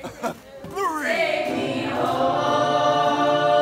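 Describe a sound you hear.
Young women sing together.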